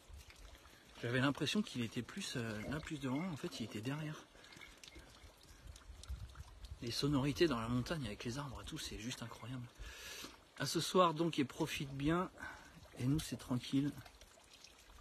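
A man speaks calmly close to the microphone, outdoors.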